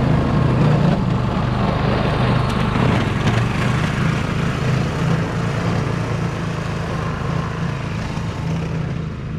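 Snow hisses as a snowblower throws it.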